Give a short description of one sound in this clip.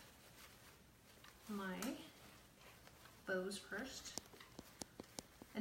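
Mesh ribbon rustles and crinkles under hands.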